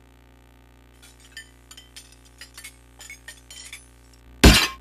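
Diners clink cutlery on plates.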